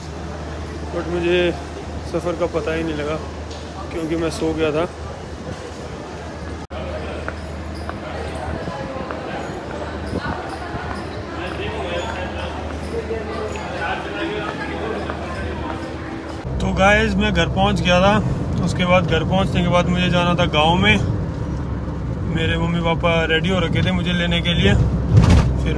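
A young man talks close to the microphone, calmly and with animation.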